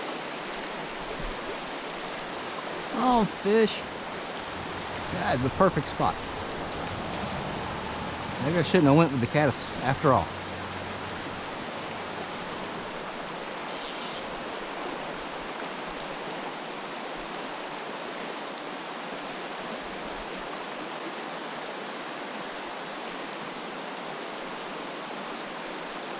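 A shallow creek flows and burbles steadily over stones outdoors.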